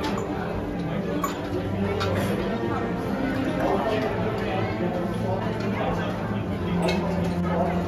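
A crowd of people chatters nearby, outdoors.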